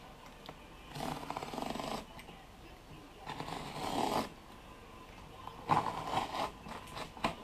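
A blade scrapes in short strokes across a rough surface.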